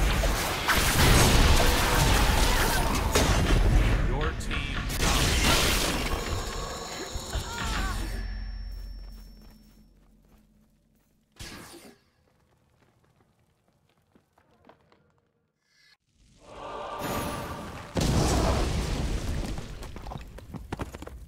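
Magic spells whoosh and crash in quick succession during a fight.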